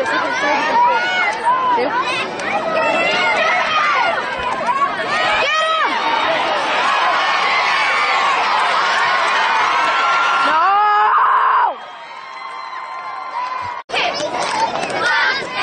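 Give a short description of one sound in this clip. A crowd cheers and shouts loudly outdoors.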